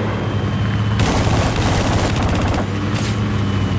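A large explosion bursts close by.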